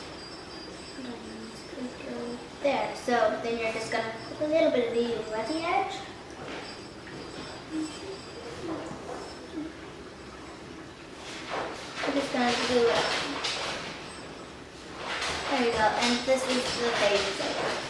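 A young girl talks calmly, close by.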